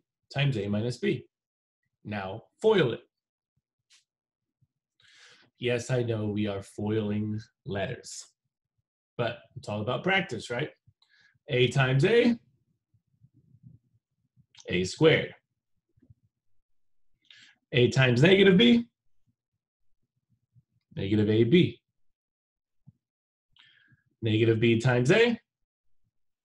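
A young man explains calmly in short phrases, heard through a microphone on an online call.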